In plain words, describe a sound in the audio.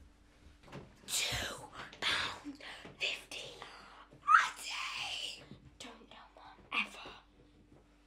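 Children shout and scuffle.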